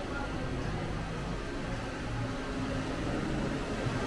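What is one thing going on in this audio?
A floor scrubbing machine hums steadily.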